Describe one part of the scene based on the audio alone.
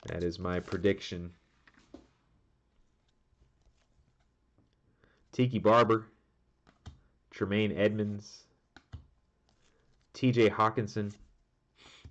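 Trading cards slide against each other.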